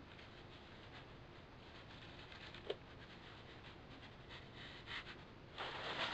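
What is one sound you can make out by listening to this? Plastic sheeting rustles and crinkles.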